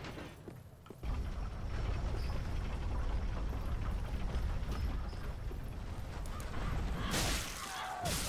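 Swords clash and thud in a fight.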